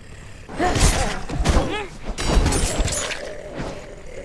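Sword blows strike a snarling creature in a fight.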